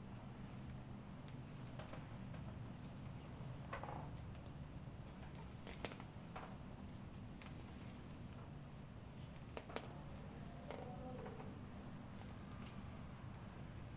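Hands pat and press on skin with soft slapping sounds.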